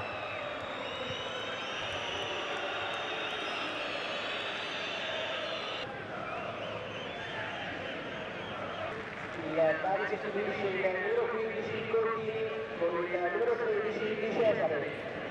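A large outdoor crowd murmurs and whistles in a stadium.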